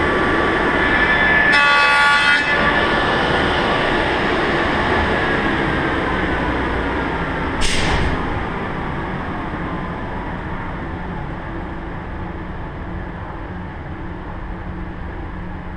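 A table saw whines as its blade spins and slowly winds down.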